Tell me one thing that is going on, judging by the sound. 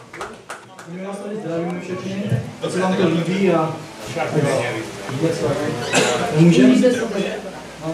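A man speaks into a microphone, amplified through loudspeakers.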